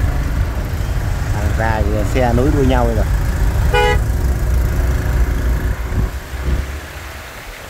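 A motorbike engine rumbles up close.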